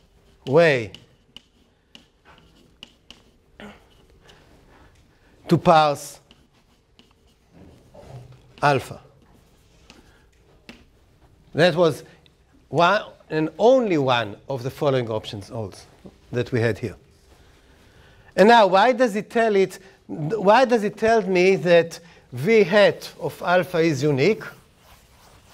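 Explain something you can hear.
An elderly man lectures calmly, pausing often.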